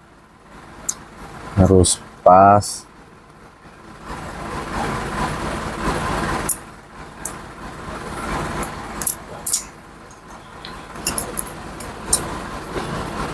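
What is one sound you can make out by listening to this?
Small metal parts click and clink in a man's hands.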